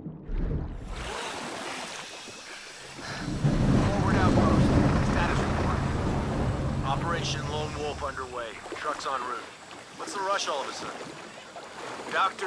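Water splashes and laps as a swimmer breaks the surface and swims.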